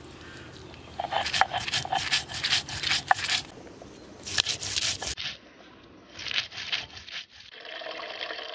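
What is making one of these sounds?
A stone roller grinds and scrapes over a grinding stone.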